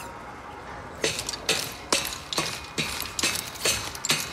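Hands grab a metal grate with quick rhythmic clanks.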